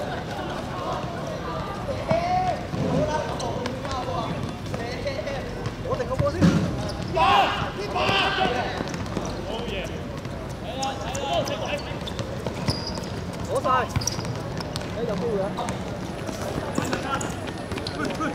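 A football is kicked on a hard court.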